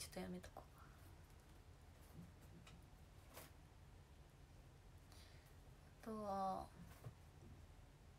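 A young woman speaks quietly, close to a microphone.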